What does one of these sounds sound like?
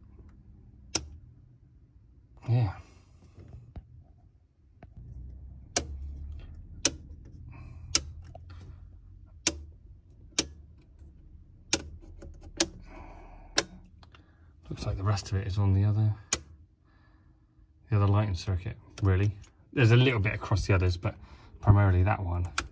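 Circuit breaker switches click sharply, one after another.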